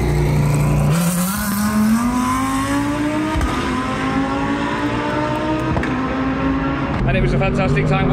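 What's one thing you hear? A single racing car engine revs up, rising in pitch as the car pulls away.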